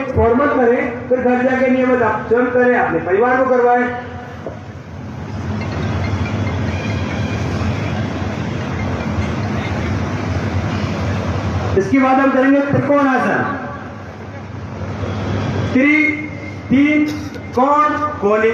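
A man's voice calls out instructions in long drawn-out tones over a loudspeaker, echoing outdoors.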